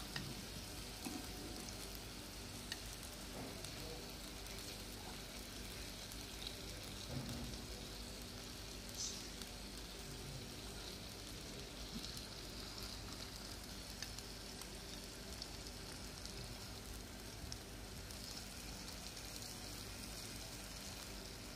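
Oil sizzles softly in a frying pan.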